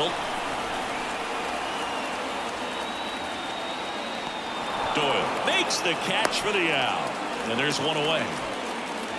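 A large crowd murmurs and cheers steadily in an open stadium.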